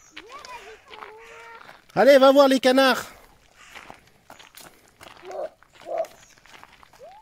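A small child's footsteps crunch on gravel.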